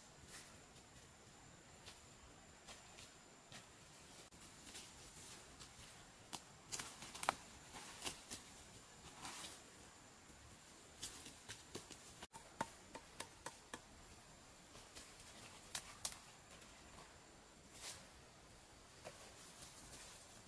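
Leaves rustle and stems snap as plants are picked by hand.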